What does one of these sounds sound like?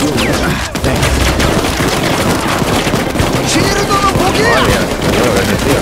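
Rapid gunfire crackles and bangs in quick bursts.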